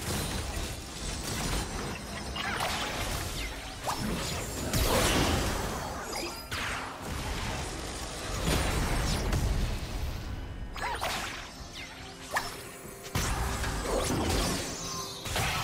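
Magic spell effects whoosh and crackle.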